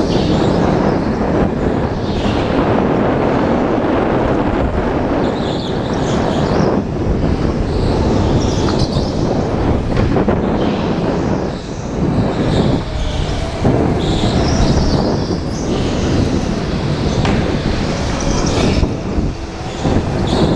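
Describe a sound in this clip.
A go-kart engine whines loudly close by as it speeds along.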